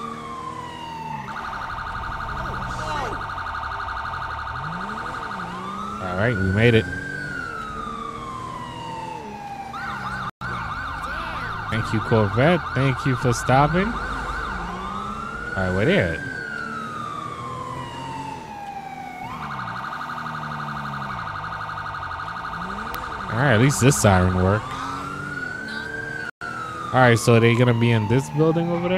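A police siren wails and yelps, rising and falling over and over.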